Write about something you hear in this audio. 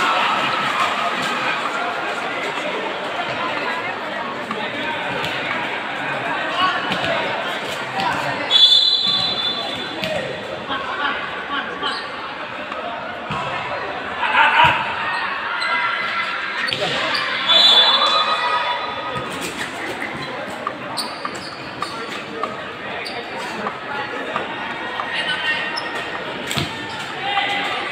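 A crowd chatters and cheers throughout a large echoing hall.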